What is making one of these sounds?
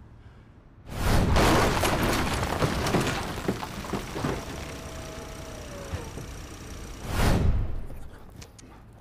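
A truck engine roars as the truck crashes down a slope.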